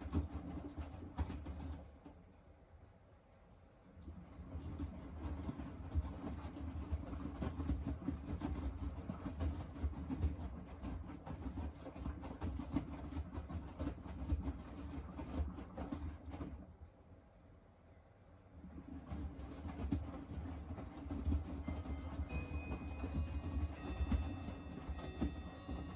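Wet laundry sloshes and thumps inside a washing machine drum.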